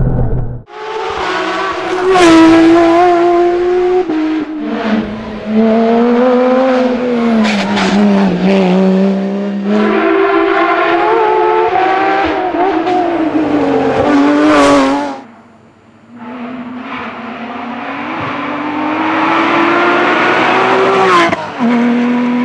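A race car engine roars loudly at high revs, rising and falling with gear changes.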